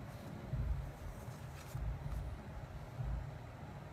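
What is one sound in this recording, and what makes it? Hands slide a sheet of leather across a hard surface.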